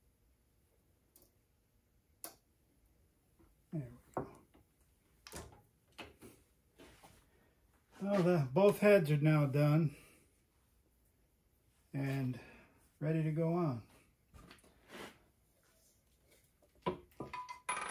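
Metal parts clink and tap as they are handled.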